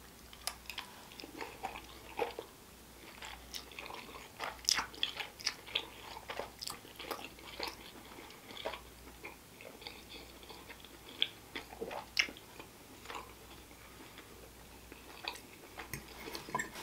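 A man chews wetly with his mouth open, close to a microphone.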